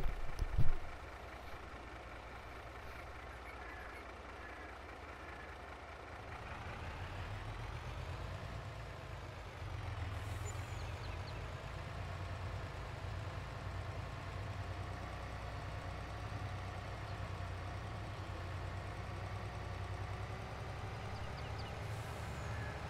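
A truck engine hums and rumbles, rising in pitch as the truck speeds up.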